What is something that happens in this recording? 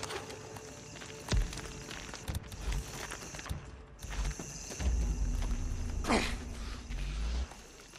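Footsteps tread steadily on a gritty floor.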